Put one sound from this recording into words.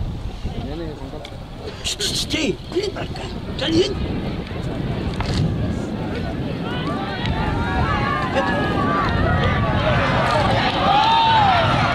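A crowd of men and women shouts and cheers outdoors, growing louder.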